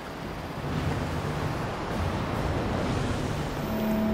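Heavy footsteps clank on a metal walkway.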